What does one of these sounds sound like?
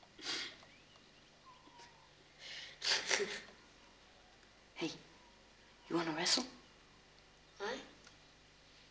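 Two teenage boys laugh and giggle softly close by.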